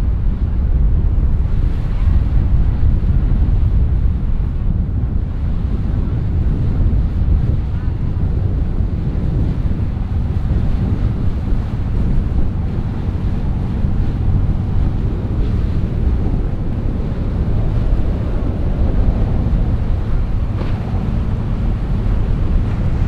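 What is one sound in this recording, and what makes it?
Water splashes and rushes against a speeding boat's hull.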